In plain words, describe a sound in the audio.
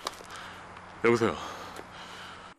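A man speaks anxiously into a phone.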